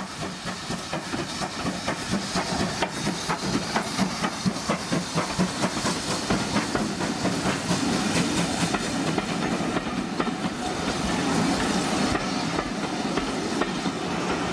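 Train wheels clatter and rumble over the rails.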